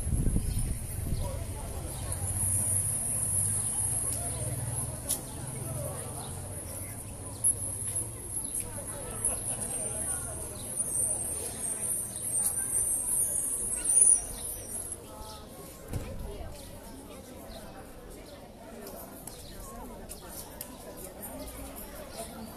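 A small group of people murmur at a distance outdoors.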